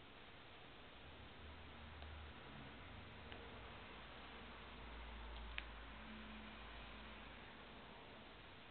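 A cat purrs softly up close.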